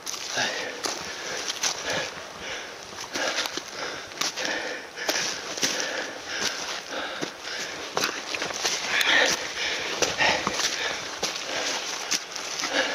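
Footsteps crunch quickly on dry leaves and twigs.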